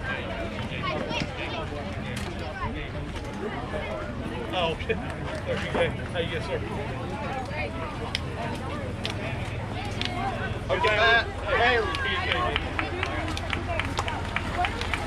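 Children chatter and call out outdoors.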